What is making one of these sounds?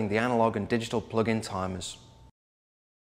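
A man speaks calmly and clearly, close to a microphone.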